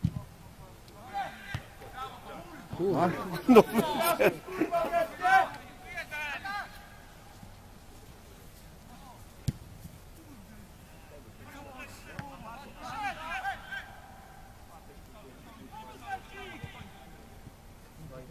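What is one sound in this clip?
Young men shout to one another across an outdoor football pitch.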